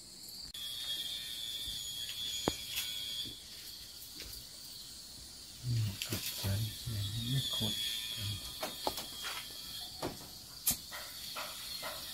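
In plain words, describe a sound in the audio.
A man's hands snap and scrape bamboo strips with small clicks.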